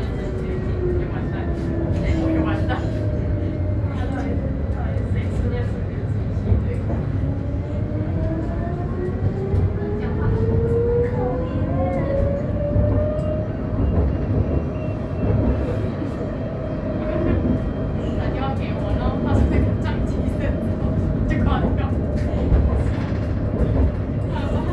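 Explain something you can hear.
Tyres rumble on the road with a low, steady roar.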